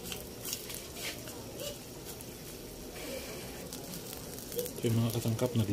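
A stew bubbles softly in a pan.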